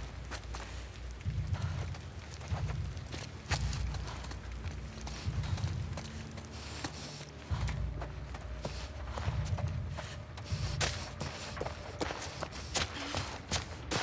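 Footsteps scuff quickly on a hard floor.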